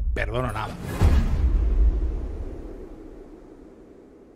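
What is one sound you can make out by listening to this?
A heavy body thuds onto a hard floor with a deep boom.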